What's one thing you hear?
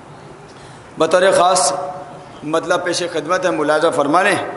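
A man sings a mournful chant loudly into a microphone in a reverberant room.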